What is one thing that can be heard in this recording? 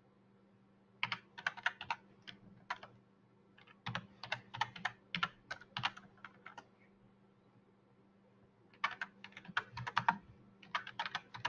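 Computer keys clatter in quick bursts of typing.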